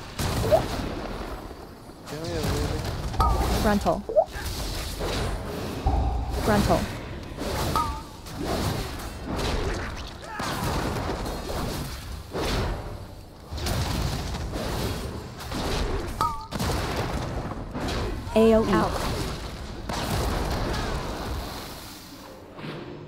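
Magic spells crackle and burst in a fast game battle.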